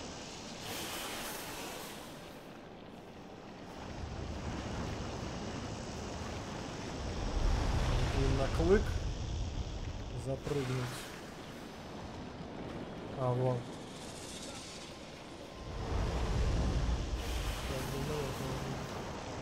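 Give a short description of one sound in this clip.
Leaves rustle as someone pushes through tall grass.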